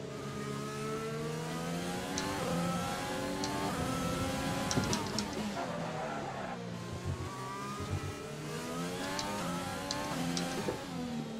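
A racing car engine whines and shifts gears as the car speeds along a track.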